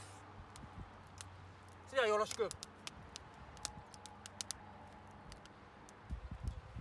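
A wood fire crackles and pops close by.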